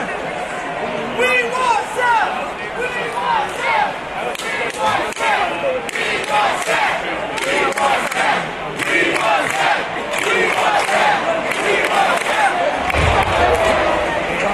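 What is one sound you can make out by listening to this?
Nearby fans shout and whistle.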